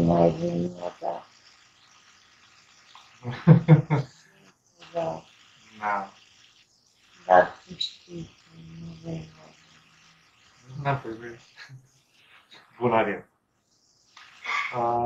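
A young man talks and laughs over an online call, in short bursts.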